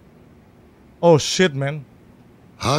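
A young man speaks animatedly into a microphone close by.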